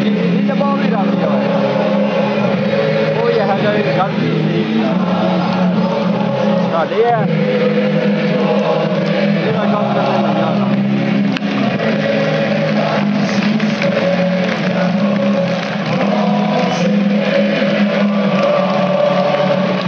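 A rock band plays loudly on a stage outdoors, heard from a distance.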